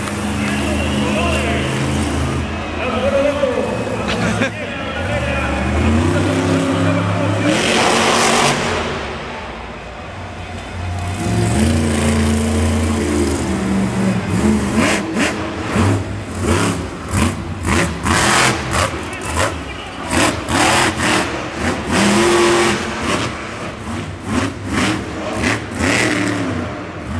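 Monster truck engines roar and rev loudly.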